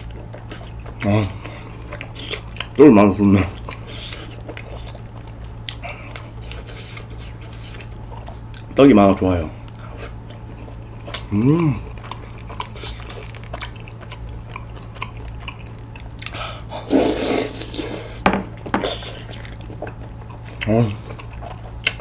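A young man hums and exclaims with his mouth full.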